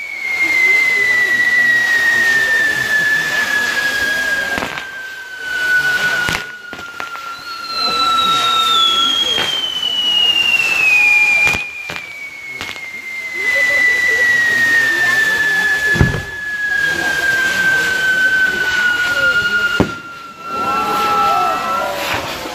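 Fireworks crackle and hiss nearby.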